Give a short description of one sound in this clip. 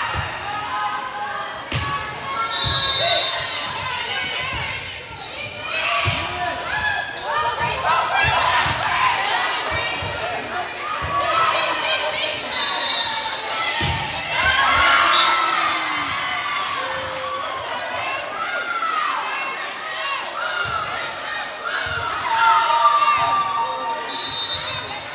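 Players and spectators shout and cheer in a large echoing gym.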